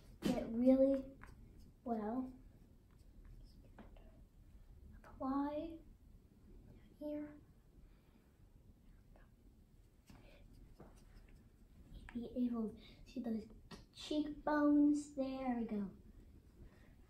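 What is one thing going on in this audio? A young girl talks softly up close.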